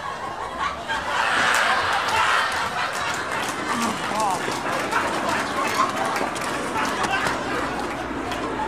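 A group of young men talk and shout loudly nearby outdoors.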